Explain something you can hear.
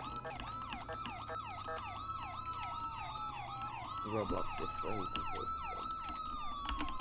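A police siren wails with a fast rising and falling tone.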